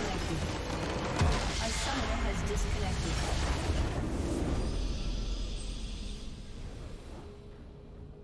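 A loud magical explosion booms and fades away.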